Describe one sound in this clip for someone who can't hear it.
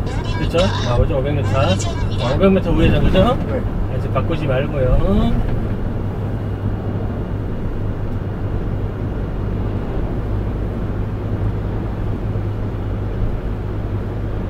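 An engine hums steadily with a low rumble from inside a moving vehicle.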